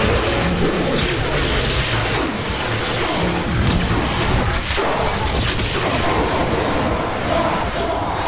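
A heavy energy gun fires loud crackling blasts.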